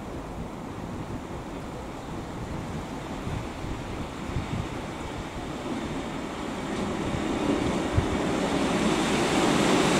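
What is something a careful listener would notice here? A train rolls in and draws closer with a low rumble.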